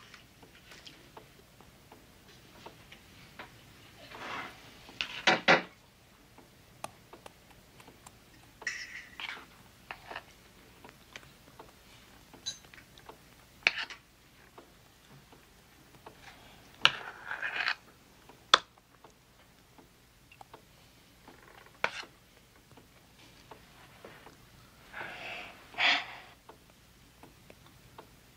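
Dishes and containers clink and knock on a table.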